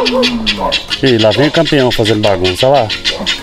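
A cow moos nearby.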